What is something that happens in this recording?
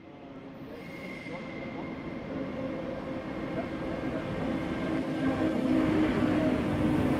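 A train approaches and rumbles past, growing steadily louder.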